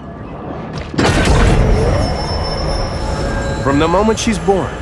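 A bright magical shimmer rings out as a chest bursts open.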